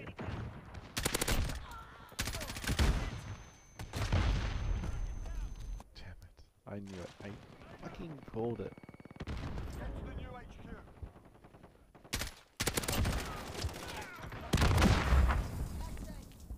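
A rifle fires rapid shots up close.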